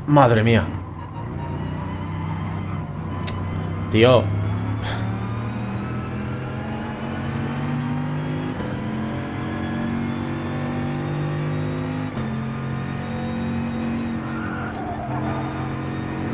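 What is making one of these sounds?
A racing car engine roars and rises in pitch as it speeds up through the gears.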